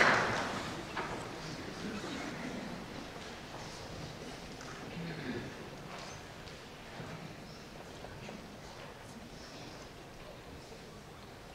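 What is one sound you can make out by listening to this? An orchestra plays softly in a large hall.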